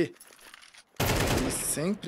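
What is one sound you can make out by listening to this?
Gunfire rings out in quick bursts.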